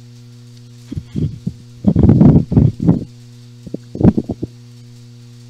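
Playing cards are shuffled by hand in quick bursts.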